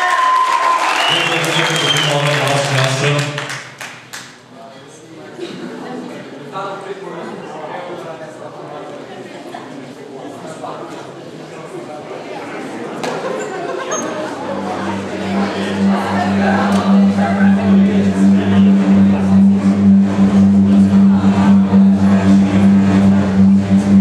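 A man sings into a microphone through loudspeakers in an echoing hall.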